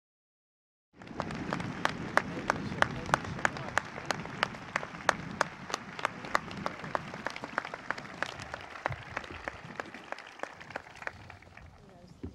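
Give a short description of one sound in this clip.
Several people applaud with steady clapping.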